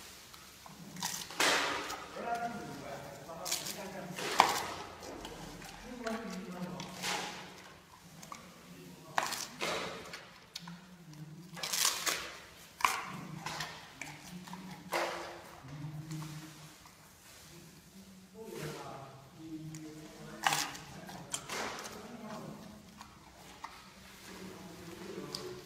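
A panda crunches and snaps bamboo shoots close by.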